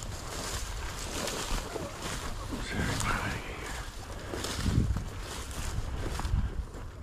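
Footsteps rustle through dry tall grass.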